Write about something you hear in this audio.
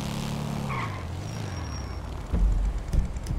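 A motorcycle engine hums and revs.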